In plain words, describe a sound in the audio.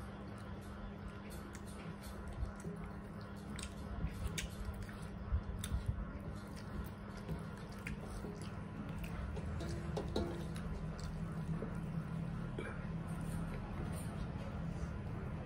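Fingers squish and scrape rice on metal plates.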